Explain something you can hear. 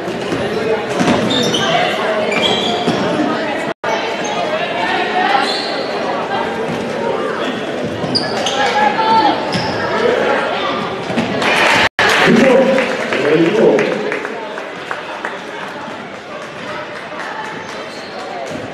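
A crowd cheers and shouts in a large echoing gym.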